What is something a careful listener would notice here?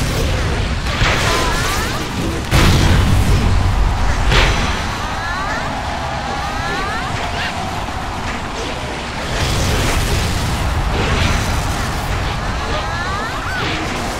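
Chirping game sound effects sweep upward in quick runs.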